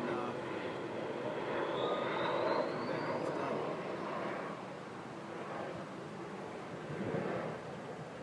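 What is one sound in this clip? A paintbrush scrapes softly on rough concrete.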